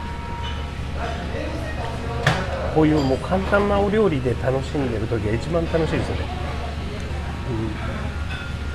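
A man speaks close to a microphone in a quiet, expressive voice.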